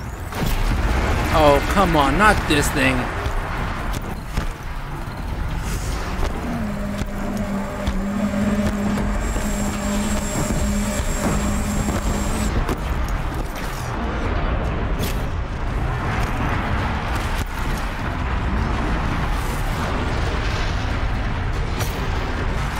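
A huge metal beast screeches and roars.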